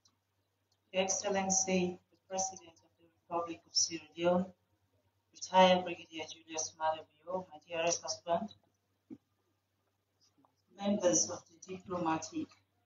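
A woman speaks calmly into a microphone, in short phrases with pauses.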